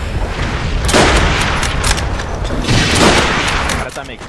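A rifle fires sharp, single shots.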